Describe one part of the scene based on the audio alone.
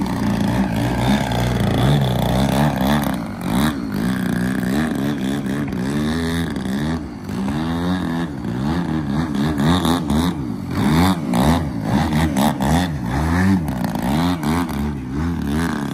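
A model airplane engine buzzes loudly, its pitch rising and falling as it climbs and dives close by.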